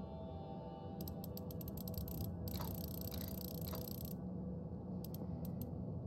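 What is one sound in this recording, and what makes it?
A safe's dial turns with rapid ticking clicks.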